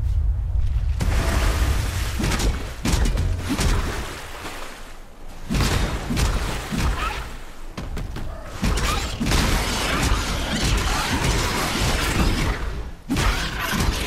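Magic spells burst with loud whooshes and blasts.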